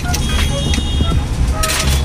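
A knife chops on a cutting board.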